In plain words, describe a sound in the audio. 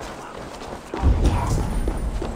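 A deep whooshing rumble swells suddenly.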